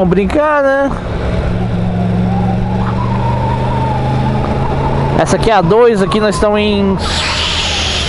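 A motorcycle engine hums steadily while cruising.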